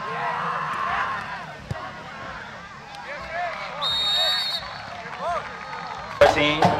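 A crowd cheers and chatters outdoors.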